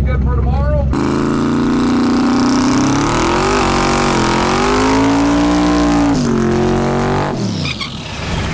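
A race car engine revs loudly, rising and falling.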